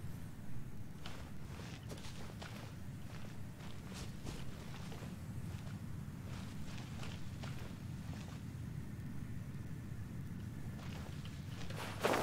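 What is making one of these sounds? Footsteps patter lightly on stone.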